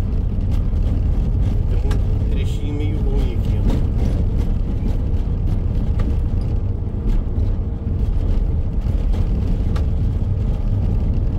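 Tyres rumble steadily on an asphalt road.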